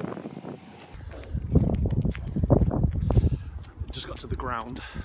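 A young man speaks close to the microphone outdoors in light wind.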